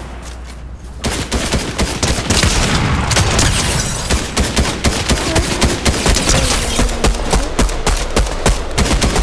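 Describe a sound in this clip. Gunshots crack rapidly, one after another.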